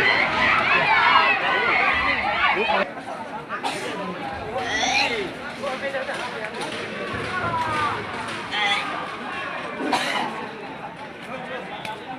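A crowd of men shouts and talks excitedly outdoors.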